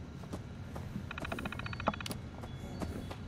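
A computer terminal beeps and chirps as it starts up.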